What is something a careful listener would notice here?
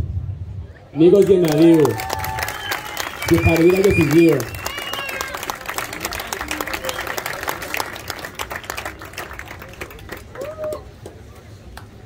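A crowd claps its hands.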